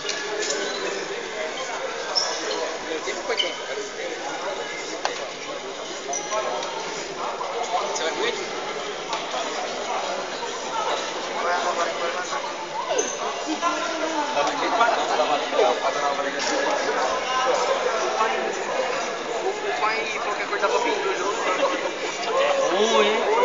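A crowd of spectators chatters and shouts, echoing through a large indoor hall.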